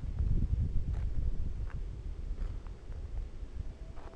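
A duck ruffles its feathers nearby.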